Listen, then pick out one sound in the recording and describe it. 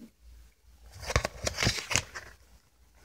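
A disc clicks as it is pried off the hub of a plastic disc case.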